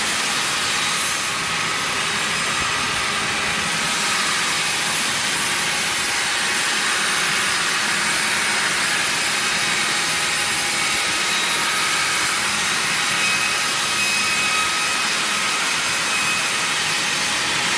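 A band saw whines steadily as it cuts through a log.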